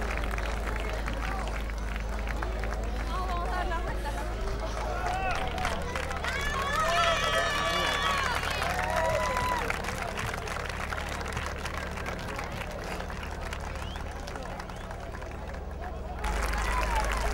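A large crowd cheers and applauds outdoors.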